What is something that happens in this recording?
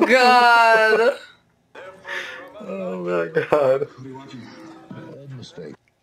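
A young man laughs quietly.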